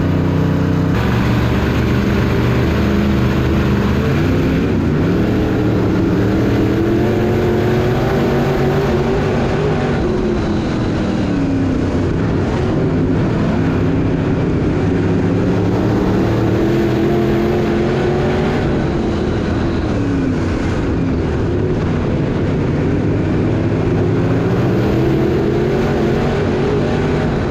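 A race car engine roars loudly from close up, rising and falling as it revs.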